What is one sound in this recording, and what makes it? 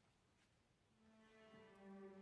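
A string orchestra begins playing in a large echoing hall.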